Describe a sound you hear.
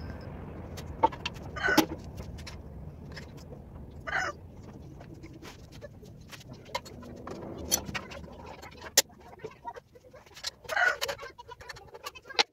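Metal tools clink and tap against an engine.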